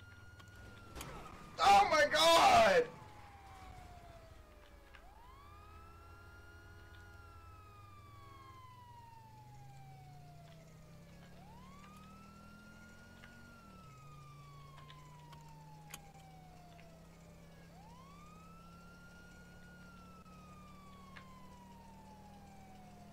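A police siren wails in long rising and falling sweeps.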